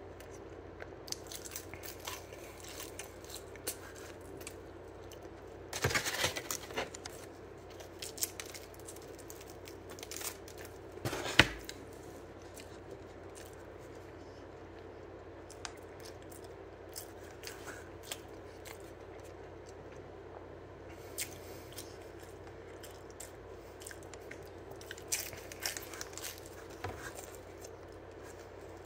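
A young man crunches on crispy food while chewing.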